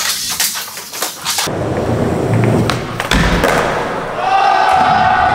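Skateboard wheels roll over a smooth floor in a large echoing hall.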